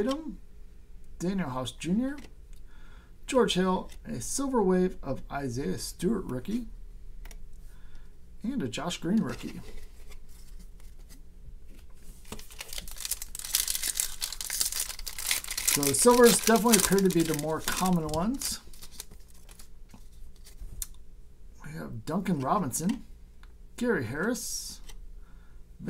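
Trading cards slide and click against each other.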